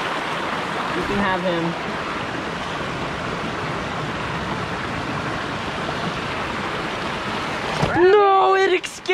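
A stream rushes steadily over rocks nearby.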